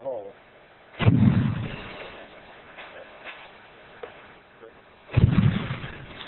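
Muffled explosions bang sharply inside a metal canister.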